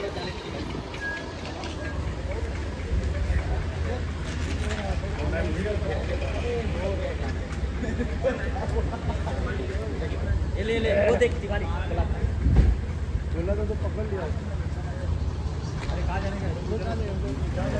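Several men talk and call out nearby.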